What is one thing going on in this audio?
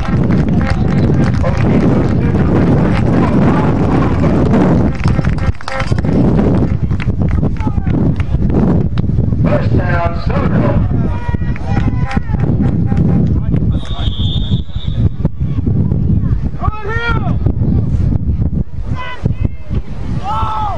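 Young men on a sideline shout and cheer outdoors.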